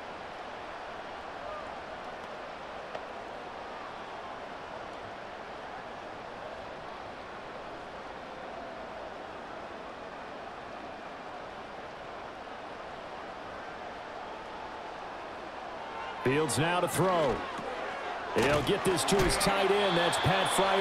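A large crowd murmurs and cheers steadily in the distance.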